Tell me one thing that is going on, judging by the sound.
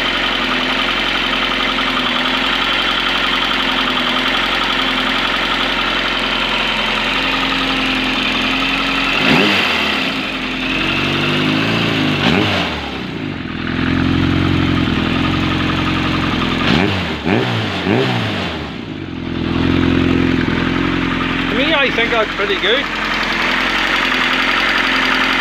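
An inline-four motorcycle engine idles.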